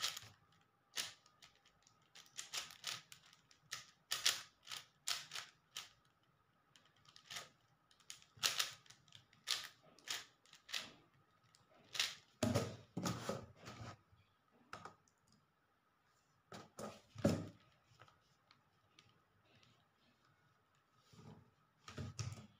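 Plastic puzzle cube layers click and clatter as they are turned quickly.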